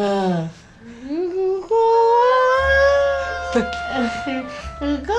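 A man laughs loudly, close by.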